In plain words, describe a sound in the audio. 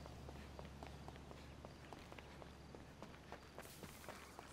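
Footsteps run down metal stairs.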